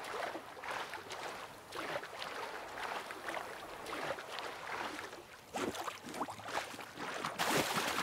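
Water splashes and sloshes as a swimmer paddles steadily.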